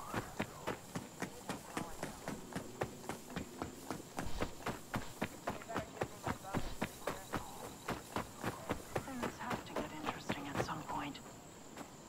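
Footsteps crunch quickly through dry grass and over dirt.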